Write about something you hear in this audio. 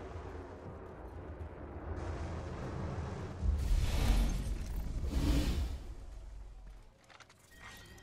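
A deep roaring rumble swells loudly and then fades away.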